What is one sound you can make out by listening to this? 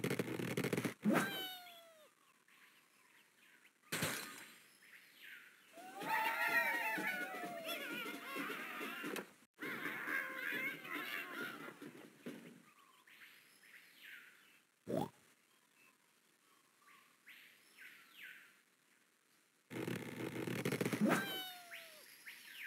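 A bird squawks as it is flung through the air.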